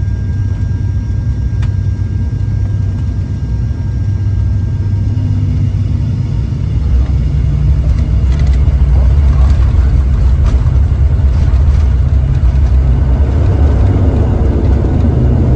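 A plane's wheels rumble over a runway.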